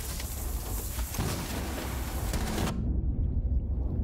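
A loud bang goes off.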